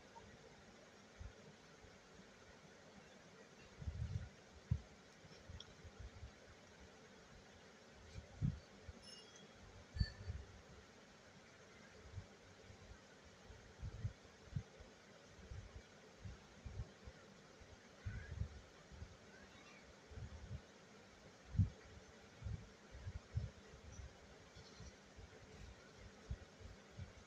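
A sewing machine stitches with a soft clatter.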